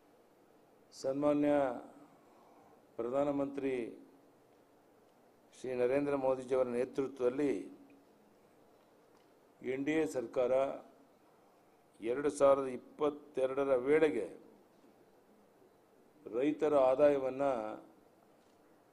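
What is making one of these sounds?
An elderly man speaks slowly and deliberately into microphones, in short phrases with pauses.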